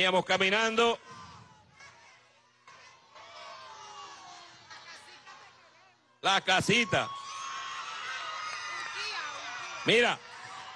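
A large crowd cheers and shouts.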